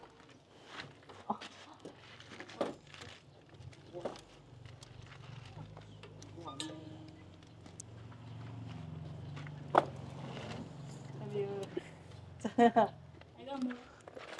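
Clay bricks knock and clatter as they are stacked.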